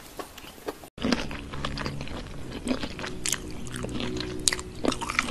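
A woman bites and chews a crunchy coated snack close to a microphone.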